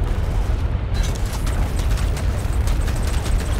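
Rapid gunfire and small blasts crackle in a battle.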